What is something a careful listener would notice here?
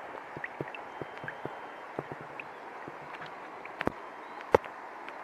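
Water drops plop into shallow water.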